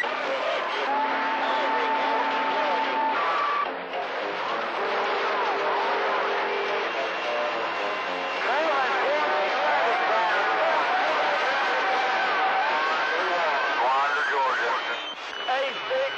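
Static hisses and crackles steadily from a radio receiver.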